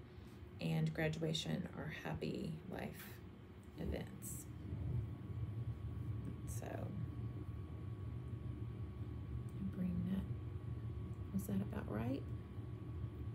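A woman speaks calmly and casually close to a microphone, in short bursts.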